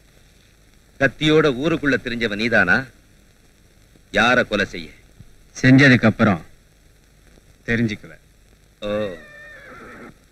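A man speaks forcefully and angrily, close by.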